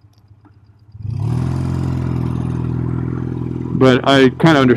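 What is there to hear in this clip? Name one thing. A motorcycle engine rumbles steadily at idle.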